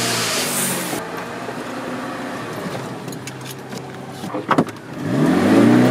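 A car engine runs and revs.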